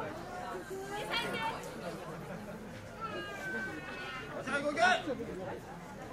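A man calls out in a high, chanting voice.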